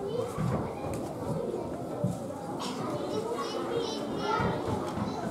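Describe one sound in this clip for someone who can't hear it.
Young children speak and chatter in a large echoing hall.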